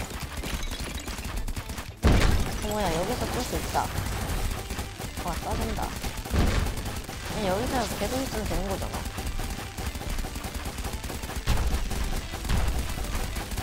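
A boy talks excitedly into a microphone.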